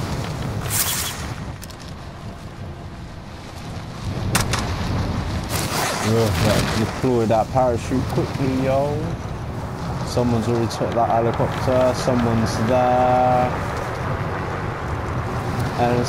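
Wind rushes loudly past during a freefall.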